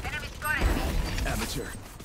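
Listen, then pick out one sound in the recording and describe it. A loud blast bursts out close by.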